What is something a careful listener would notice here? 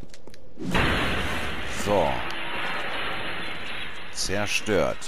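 A magic spell crackles and hisses.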